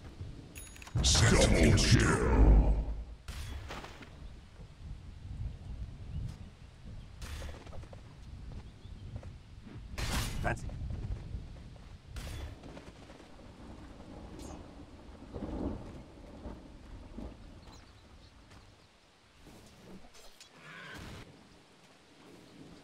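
Spell effects and weapon hits crackle and clash in bursts.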